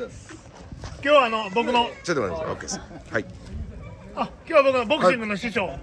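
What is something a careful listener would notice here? A second man talks loudly and energetically close by.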